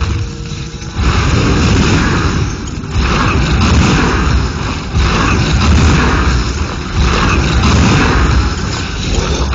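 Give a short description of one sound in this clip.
Weapons clash and strike in quick bursts.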